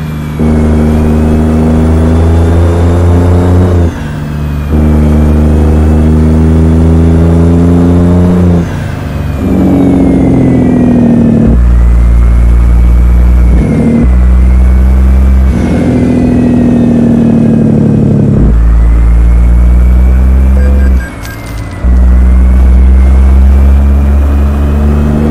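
A truck's diesel engine drones loudly, rising and falling in pitch as it shifts gears.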